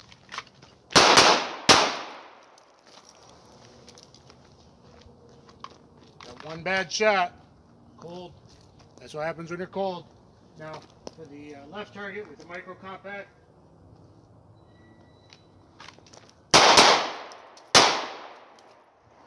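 A pistol fires loud shots outdoors, each echoing off the hills.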